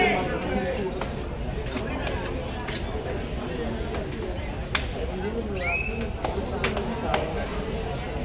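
Feet slap and thud on the court.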